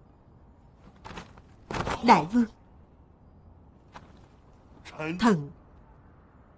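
An older man speaks in a pleading, tearful voice close by.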